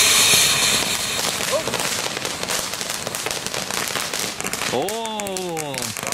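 Sparks from a firework fountain crackle and pop rapidly.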